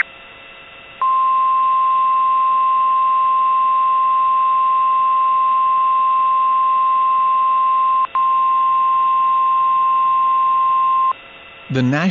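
A weather radio sounds a long, steady, high alert tone.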